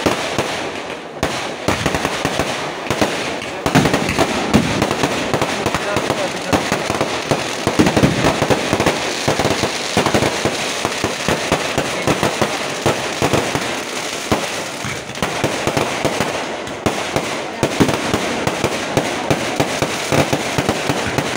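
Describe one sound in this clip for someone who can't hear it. Fireworks crackle and pop rapidly, close by.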